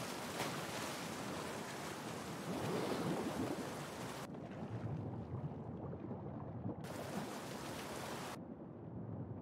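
Water splashes as a man swims at the surface.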